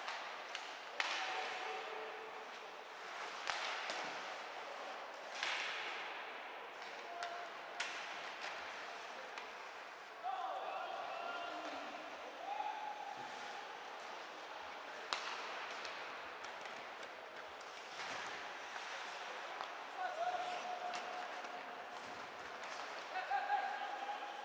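Hockey sticks sharply clack against a puck.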